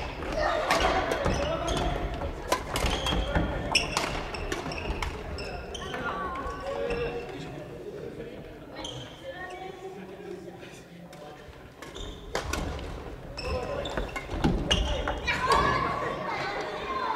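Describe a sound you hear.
Young people call out and chatter in the echoing hall.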